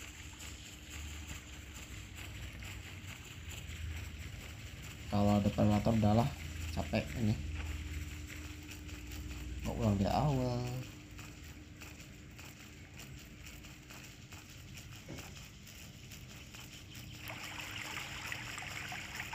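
An animal's paws patter softly over leaves and earth as it walks.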